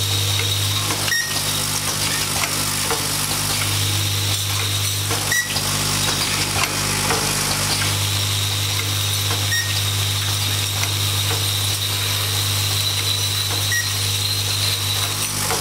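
An automated machine hums steadily.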